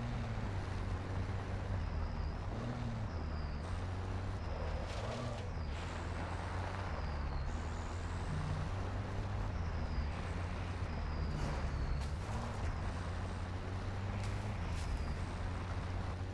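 A truck engine rumbles steadily as the truck drives over rough ground.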